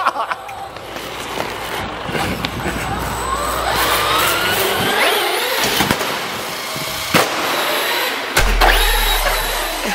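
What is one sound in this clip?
An electric toy car motor whines and revs up as the car speeds across a hard floor.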